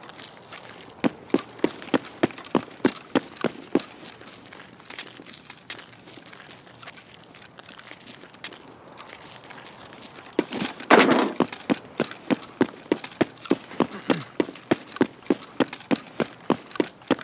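Footsteps crunch steadily on gravel and pavement.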